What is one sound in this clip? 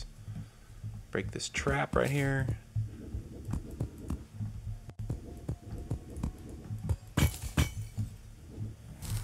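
A pickaxe strikes rock repeatedly in a video game.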